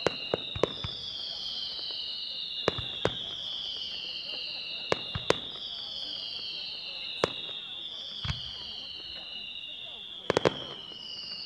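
Fireworks burst overhead with sharp bangs and pops.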